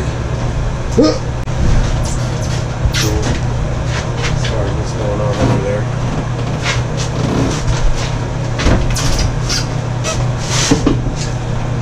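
A bathtub knocks and scrapes as it is shifted into place.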